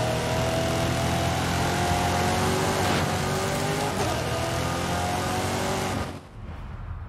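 A racing car engine roars loudly at high speed.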